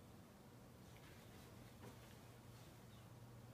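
A dog paws and scratches at a soft blanket.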